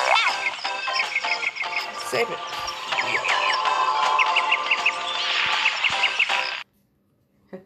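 Lively game music plays with bright sound effects, then cuts off abruptly.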